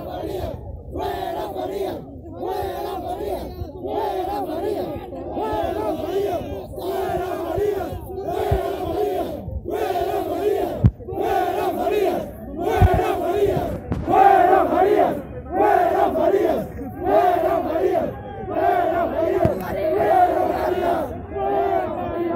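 A crowd of men chants loudly in rhythmic bursts close by.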